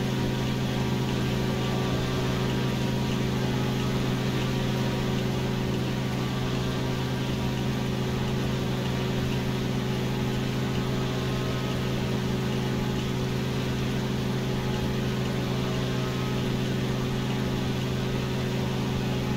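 A propeller engine drones steadily at a low, even pitch.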